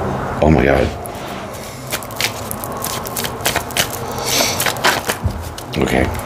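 Playing cards shuffle and riffle in a man's hands.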